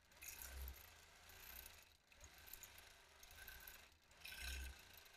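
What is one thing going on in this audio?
A sewing machine stitches with a fast, steady hum that rises and falls in bursts.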